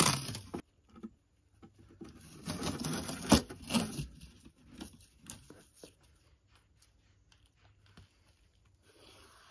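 A hand brushes and bumps against a door frame.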